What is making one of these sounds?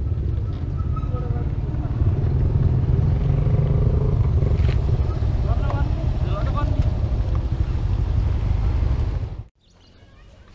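A motor scooter engine rumbles close by.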